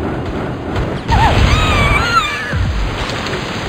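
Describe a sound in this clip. A magic blast bursts with a loud crackling boom.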